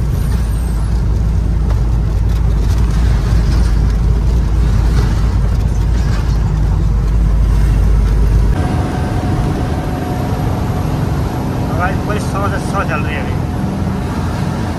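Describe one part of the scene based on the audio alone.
A truck engine rumbles steadily from inside the cab while driving.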